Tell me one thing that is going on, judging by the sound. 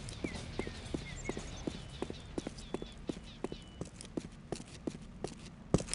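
Footsteps clatter steadily on roof tiles.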